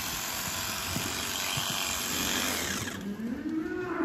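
A handheld sprayer hisses loudly.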